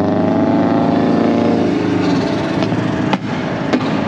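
A passing car rushes by close outside.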